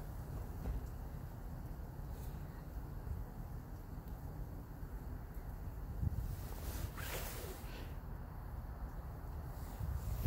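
Fingers brush and rustle through dry roots.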